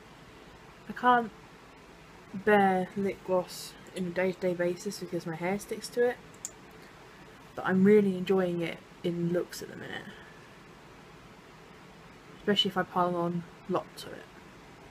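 A young woman talks calmly close to a microphone, with pauses.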